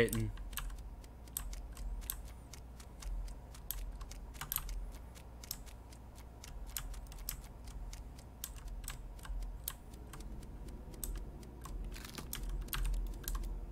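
Quick light footsteps patter across a floor.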